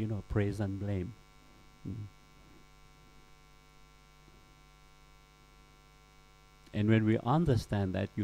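A middle-aged man speaks with animation into a close microphone, pausing between phrases.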